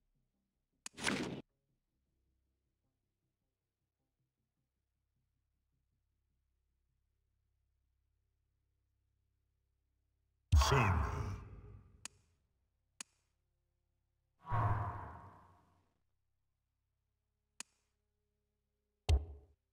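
Short game whooshes sweep in and quickly fade.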